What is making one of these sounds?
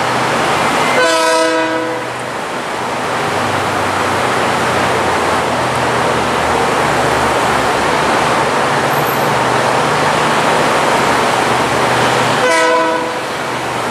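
A train horn blasts loudly in short bursts.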